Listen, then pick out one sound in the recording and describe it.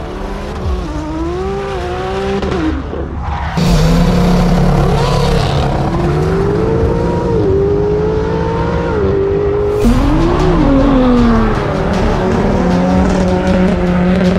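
Tyres screech and spin on the tarmac.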